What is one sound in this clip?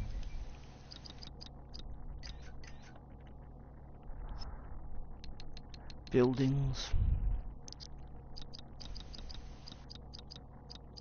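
Soft menu clicks tick quickly, one after another.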